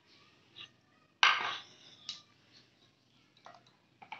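A glass bottle is set down with a knock on a hard floor.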